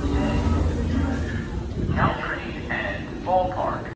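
People murmur and walk in an echoing station.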